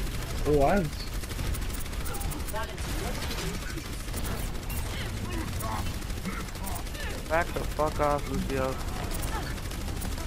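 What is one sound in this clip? Energy weapons fire in quick repeated blasts.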